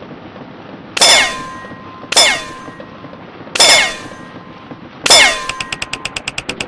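Bright chimes ring out.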